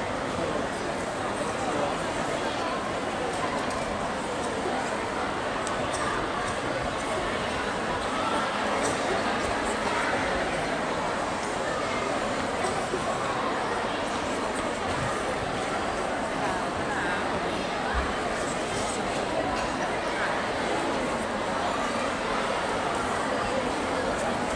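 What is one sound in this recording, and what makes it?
A large crowd of girls chatters and murmurs in a big echoing hall.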